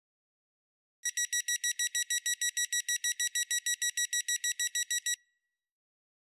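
A train's door-closing warning beeps rapidly.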